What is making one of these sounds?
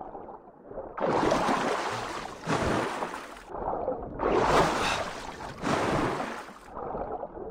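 Water gurgles and rushes in bursts underwater.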